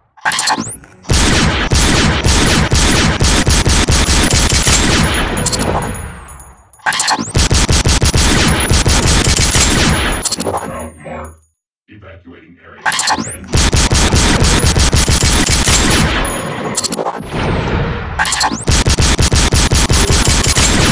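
A gun fires rapid bursts of loud shots.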